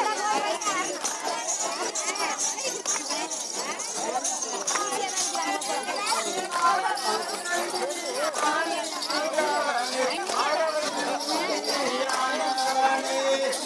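A crowd of men and women chatters and calls out loudly outdoors.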